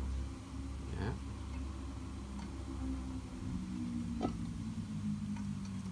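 A hand wrench turns a screw extractor with small metallic clicks.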